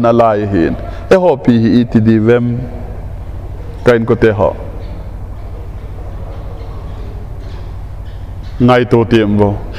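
A middle-aged man speaks with emphasis through a microphone, in bursts with pauses.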